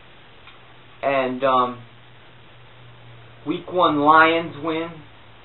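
A man reads out loud close by, in short bursts.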